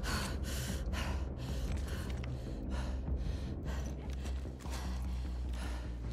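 Footsteps creak softly across a wooden floor.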